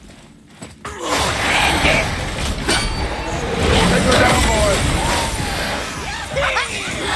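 Weapons clash and crash in a fierce fight.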